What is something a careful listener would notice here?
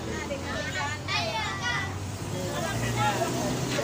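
A young girl talks with animation.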